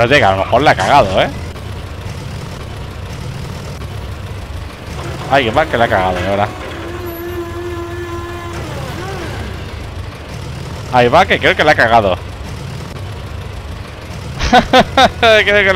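A forklift engine hums steadily.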